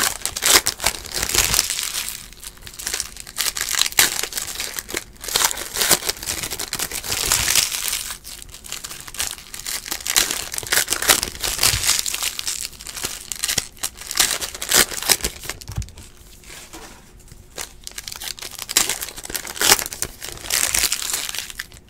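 Foil card packs crinkle and rustle as hands tear them open.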